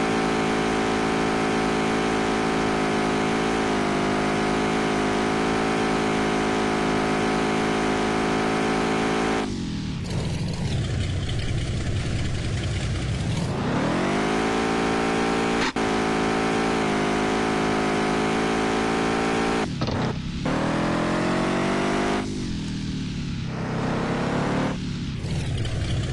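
A car engine drones loudly, its pitch dropping and then climbing again now and then.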